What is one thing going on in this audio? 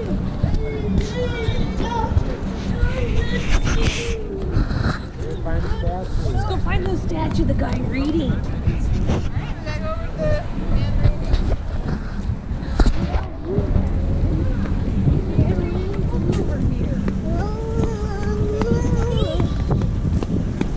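A young child talks in a high voice close by.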